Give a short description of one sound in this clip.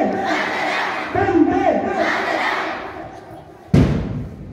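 A group of children chants loudly outdoors.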